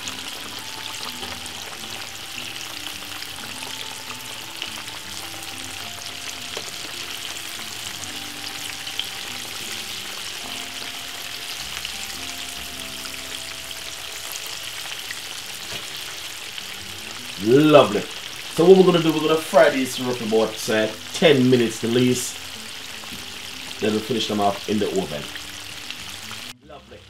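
Hot oil sizzles and crackles steadily in a pan.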